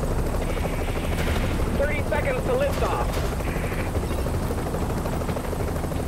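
A helicopter's rotor thumps.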